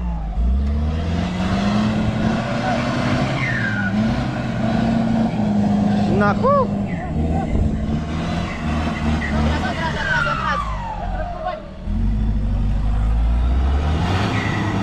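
A vehicle engine revs hard and labours.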